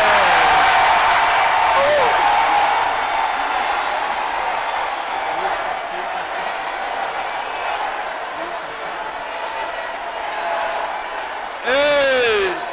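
A large crowd prays and shouts loudly together in an echoing hall.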